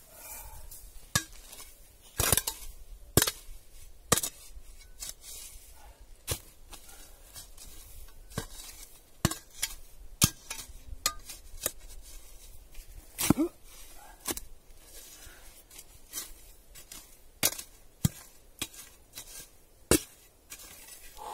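A shovel blade scrapes and chops into dry soil and roots.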